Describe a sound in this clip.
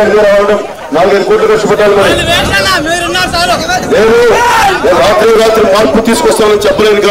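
A man speaks loudly into a microphone through a loudspeaker.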